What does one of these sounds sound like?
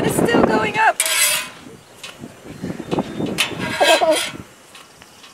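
A metal spatula scrapes across a hot griddle.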